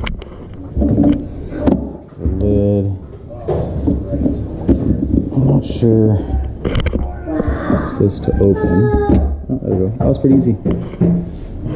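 Metal parts clink and tap as a ring is loosened and lifted off.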